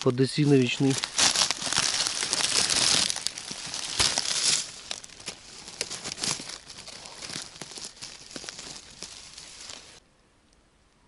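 Dry leaves rustle and crackle as a hand digs among them.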